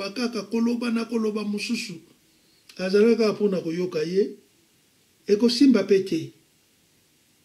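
An elderly man speaks calmly and with feeling, close by, in short bursts.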